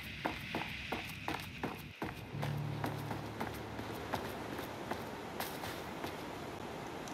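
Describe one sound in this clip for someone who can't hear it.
Footsteps tread at a steady walking pace.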